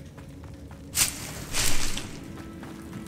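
A rustling swoosh sounds as something is picked up.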